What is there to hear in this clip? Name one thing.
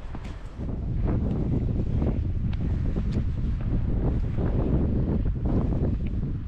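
Wind blusters hard into a microphone outdoors.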